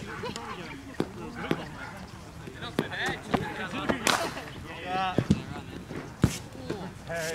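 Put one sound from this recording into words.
A cricket bat strikes a ball with a sharp crack.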